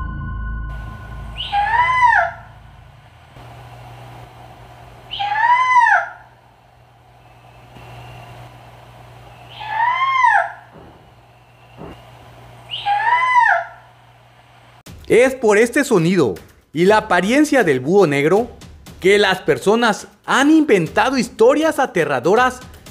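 An owl gives loud rising and falling hoots, again and again.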